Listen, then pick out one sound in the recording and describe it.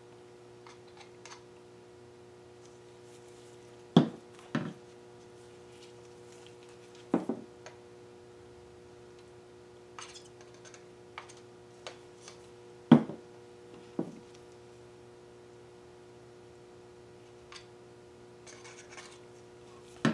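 Paint squirts from a squeezed bottle into a plastic cup.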